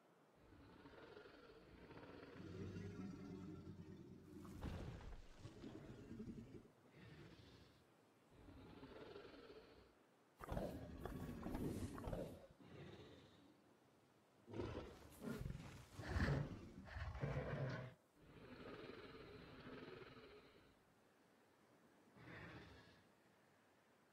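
A large dinosaur growls and roars in loud bursts.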